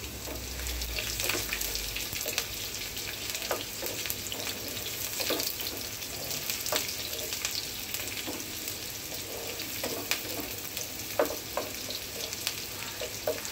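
A wooden spatula scrapes and knocks against a pan.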